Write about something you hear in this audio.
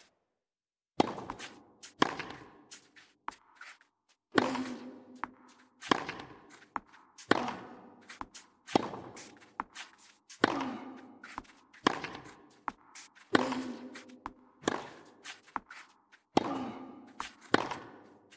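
Tennis balls are struck hard by rackets in a quick back-and-forth rally.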